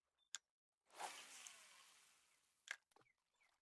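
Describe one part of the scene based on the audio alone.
A fishing line whirs off a reel and slowly fades.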